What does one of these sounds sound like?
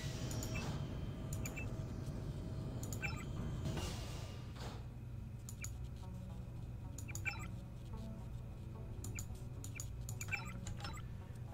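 Soft computer menu clicks sound now and then.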